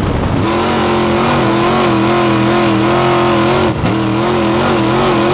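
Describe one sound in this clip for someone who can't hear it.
A race car engine roars loudly from close by, revving up and down.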